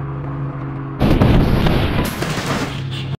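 A car crashes with a loud, noisy impact.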